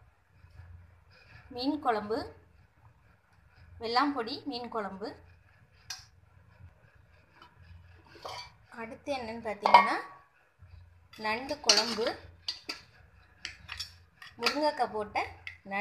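A ladle stirs thick curry in a metal pot.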